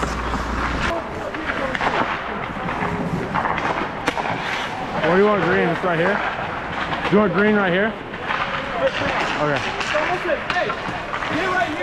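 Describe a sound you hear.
A man speaks loudly and with animation in a large echoing hall.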